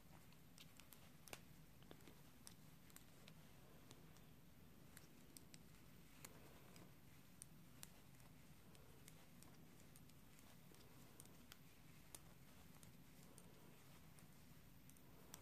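Yarn rustles as it is pulled through stitches.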